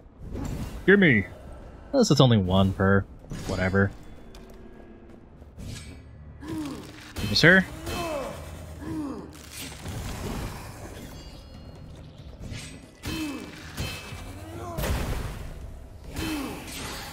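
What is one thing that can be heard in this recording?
Magic spells zap and whoosh in quick bursts.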